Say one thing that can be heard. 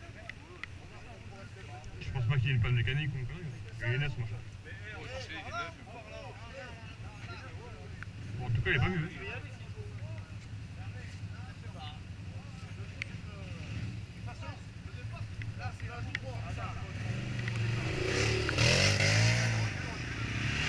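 Several men talk and call out outdoors nearby.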